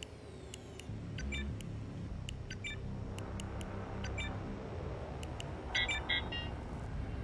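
Keypad buttons beep as a code is entered.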